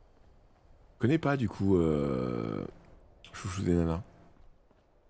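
A young man speaks close to a microphone in a drawn-out, sing-song voice.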